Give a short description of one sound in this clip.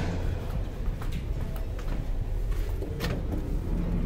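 A heavy door clicks open.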